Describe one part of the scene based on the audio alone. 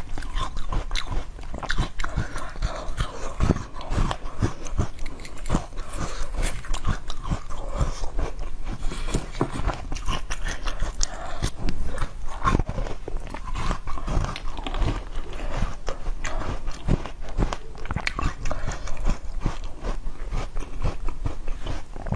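A young woman slurps and sucks on a piece of fruit.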